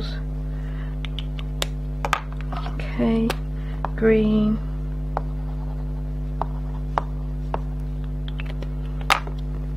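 Small objects tap and knock on a hard surface.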